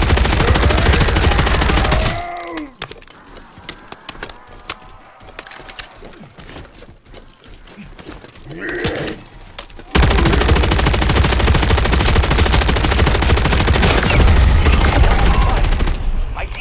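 Rapid gunfire rattles loudly and without pause.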